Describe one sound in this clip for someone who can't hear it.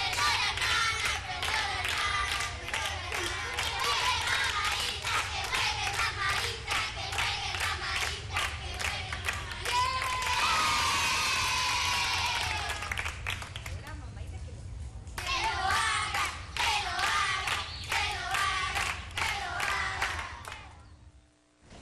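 Young children cheer and shout excitedly.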